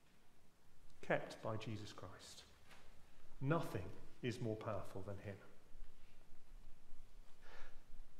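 A middle-aged man reads aloud calmly through a microphone in an echoing hall.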